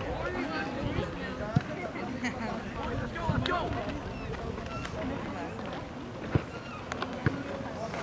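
Young players shout and call to each other outdoors on an open field.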